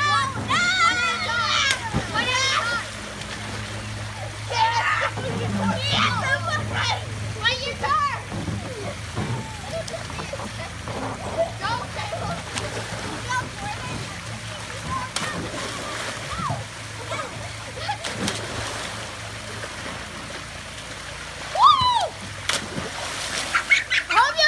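Water gushes steadily down a slide into a pool.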